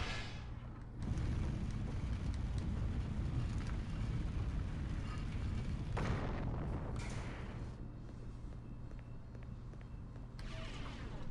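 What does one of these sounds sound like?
A deep rumble swells and hums steadily.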